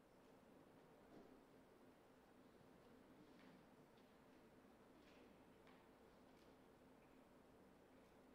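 A pipe organ plays softly.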